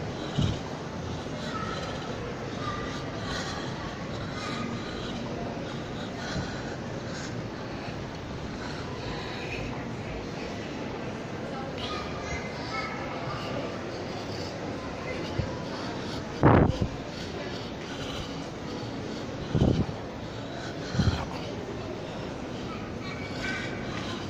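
A murmur of distant voices echoes through a large hall.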